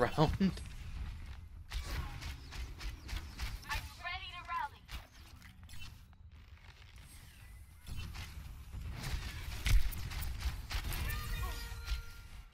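A bowstring snaps as arrows are shot, again and again.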